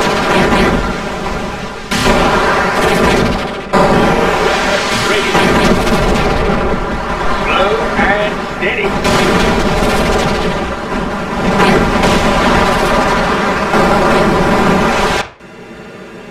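Laser weapons zap and explosions boom in a loud battle.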